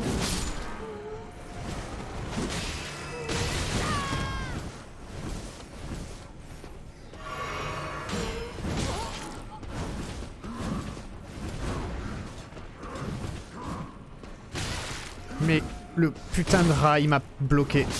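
Metal weapons clash and strike in a fight.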